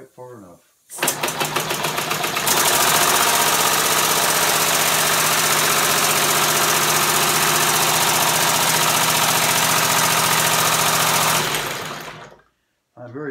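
A small engine starts and runs loudly with a rapid, steady chatter, then stops.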